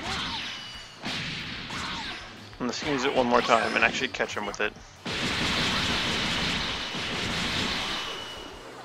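Energy blasts whoosh and roar.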